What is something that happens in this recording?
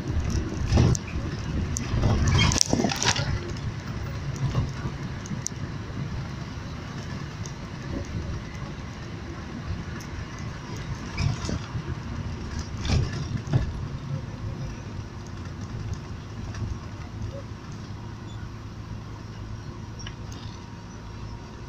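Tyres rumble on the road, heard from inside a moving car.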